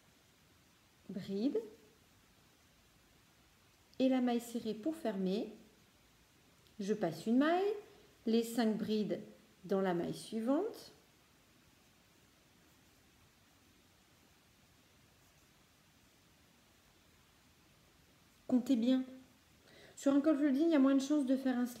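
A woman speaks calmly close by, in short bursts with pauses.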